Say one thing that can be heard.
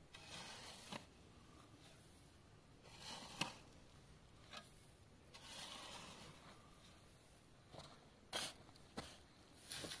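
A shovel knocks sharply against stone.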